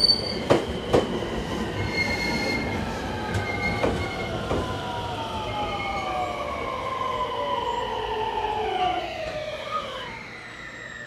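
Train brakes squeal with falling whines as the train slows.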